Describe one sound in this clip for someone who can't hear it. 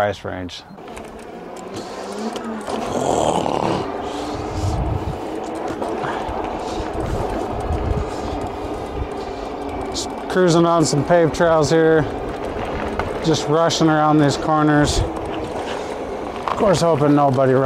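Bicycle tyres roll along a paved path.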